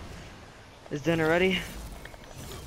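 A blade swings with a loud ringing whoosh.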